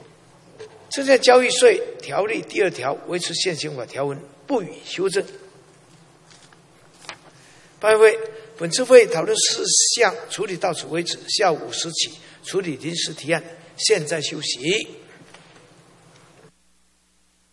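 An elderly man reads out formally through a microphone in a large hall.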